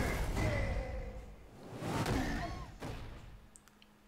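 A heavy body lands with a dull thud.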